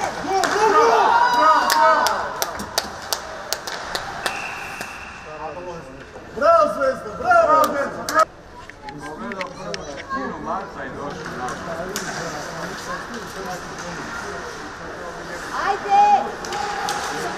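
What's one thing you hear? Young men shout loudly across an echoing rink.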